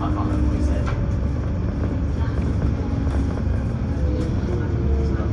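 The bus body rattles and creaks while driving.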